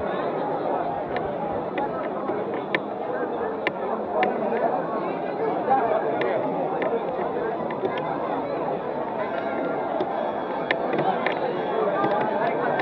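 A large crowd of men and women chatters and murmurs outdoors.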